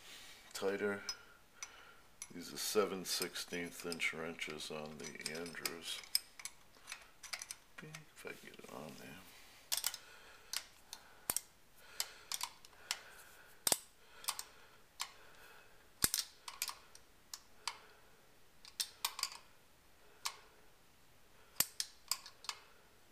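A ratchet wrench clicks in short bursts.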